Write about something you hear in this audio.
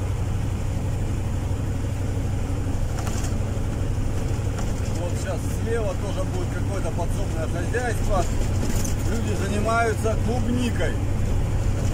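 A vehicle's engine hums low and steady from inside the cab.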